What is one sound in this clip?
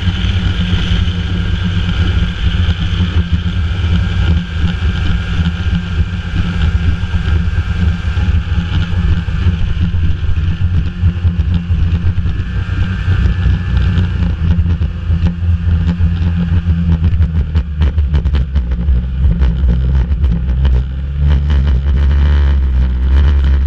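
Wind rushes over a moving snowmobile.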